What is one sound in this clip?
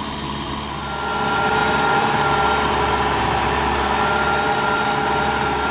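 A rotary tiller churns through wet soil with a grinding whine.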